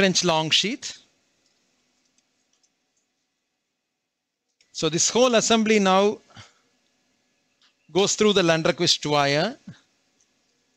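A man speaks calmly through a close microphone, in short bursts.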